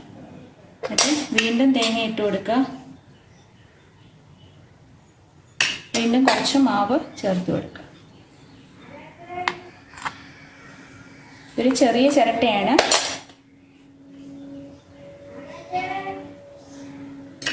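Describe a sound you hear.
A metal spoon scrapes and taps against a metal bowl.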